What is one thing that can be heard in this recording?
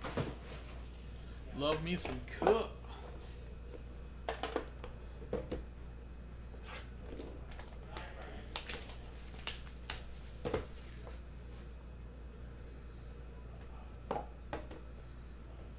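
Small cardboard boxes tap and click against a metal tin.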